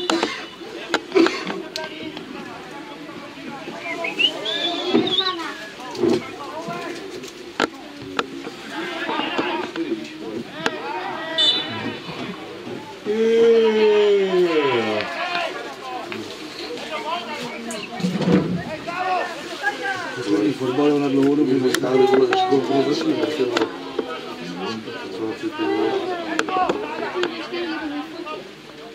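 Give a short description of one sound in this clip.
Distant players shout across an open field outdoors.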